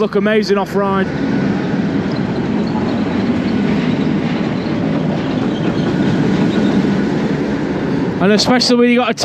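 A roller coaster train roars along its track.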